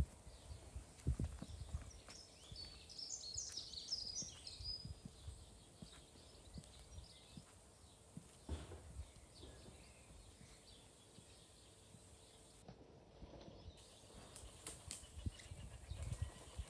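Footsteps walk slowly along a gravel path outdoors.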